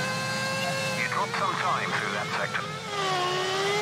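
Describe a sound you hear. Tyres screech briefly under hard braking.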